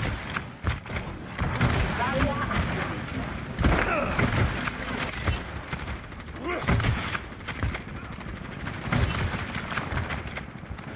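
A gun fires rapid, sharp shots.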